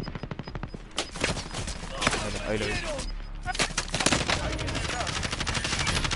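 Rapid gunfire crackles.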